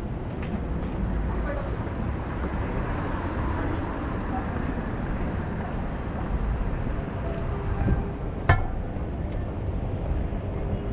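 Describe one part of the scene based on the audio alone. Outdoors, a steady city hum with wind rumbles throughout.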